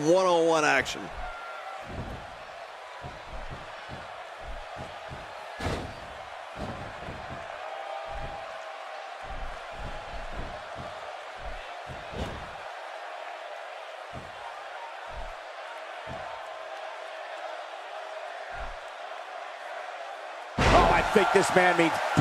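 Heavy bodies thud against a wrestling mat.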